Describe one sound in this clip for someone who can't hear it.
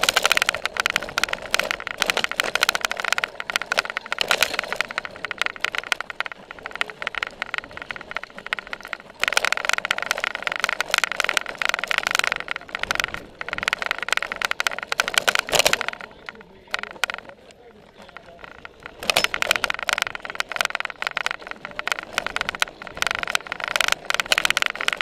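Bicycle tyres rattle and bump over grass and dirt.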